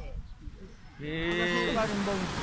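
A young man speaks close by.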